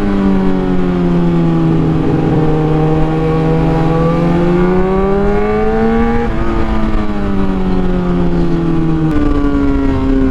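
A motorcycle engine hums steadily, rising and falling in pitch as it speeds up and shifts gears.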